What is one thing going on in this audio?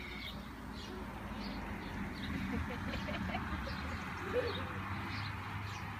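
A lawn sprinkler hisses as it sprays water.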